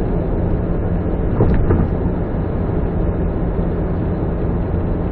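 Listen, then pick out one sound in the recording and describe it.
A car drives steadily along a highway, with a low rumble of engine and tyres on the road.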